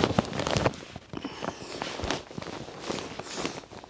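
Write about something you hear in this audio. Sandals slap on a hard floor.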